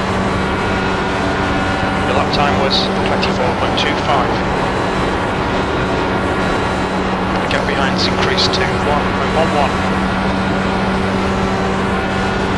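An open-wheel racing car engine drones at full throttle.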